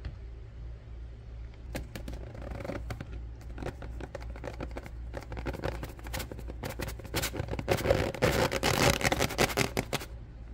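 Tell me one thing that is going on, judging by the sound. A cardboard box crinkles and rustles in a hand.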